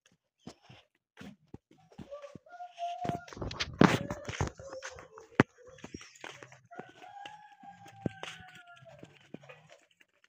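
Footsteps in sandals crunch on a dirt path.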